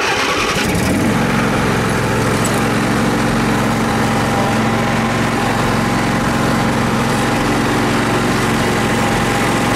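A vehicle engine idles.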